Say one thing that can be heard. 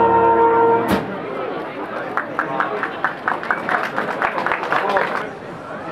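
A crowd chatters and murmurs nearby.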